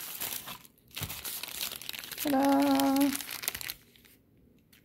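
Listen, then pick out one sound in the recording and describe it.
A plastic bag crinkles as it is picked up.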